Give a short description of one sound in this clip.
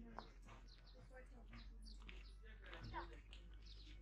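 Footsteps crunch on a dirt path close by.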